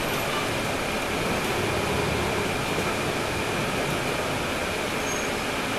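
A bus engine rumbles steadily, heard from inside the moving bus.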